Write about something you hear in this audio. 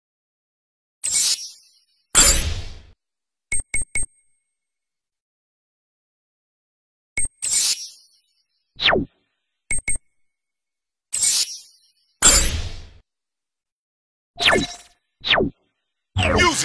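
Whooshing confirmation sounds swell and fade.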